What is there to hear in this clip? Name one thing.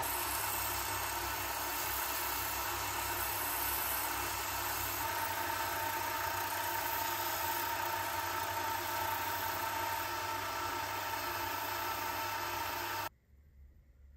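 Sandpaper rasps against spinning metal.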